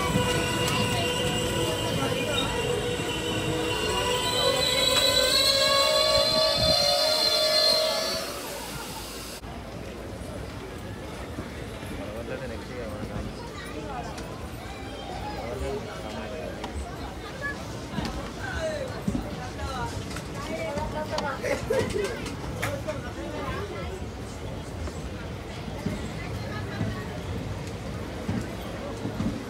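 A train rumbles and clatters past close by.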